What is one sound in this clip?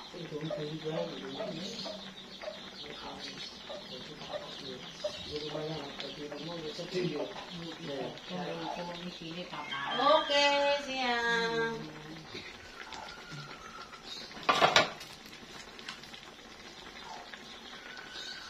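A pan of sauce simmers and bubbles gently.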